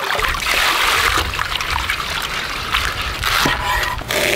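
A hand rustles and squelches through wet vegetables in water.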